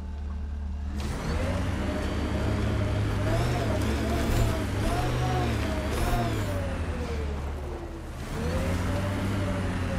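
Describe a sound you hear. A vehicle engine revs up and down, rising and falling in pitch.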